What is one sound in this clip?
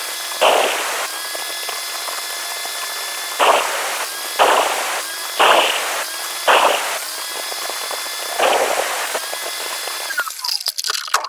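An electric tile saw runs with a steady high whine, then stops.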